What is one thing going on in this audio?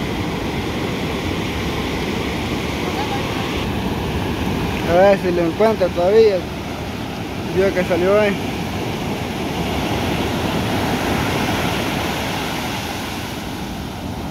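Ocean waves break and wash steadily onto a beach outdoors.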